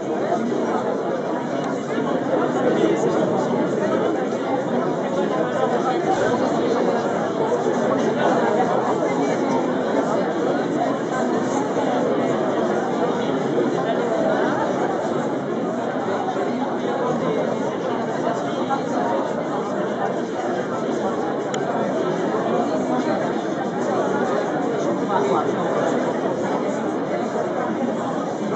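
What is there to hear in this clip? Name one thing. A crowd of men and women chatter at once.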